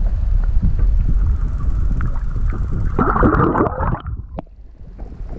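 Water rumbles and swirls, heard muffled from underwater.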